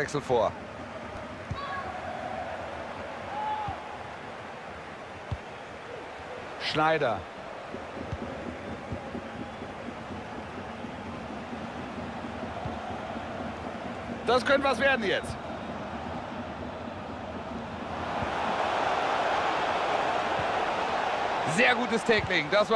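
A large stadium crowd murmurs and cheers steadily, swelling louder near the end.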